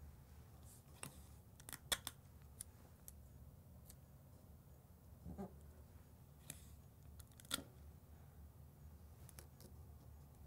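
Fingers tap and press tape onto glass.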